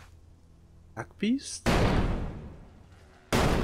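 A crossbow fires bolts with sharp snaps.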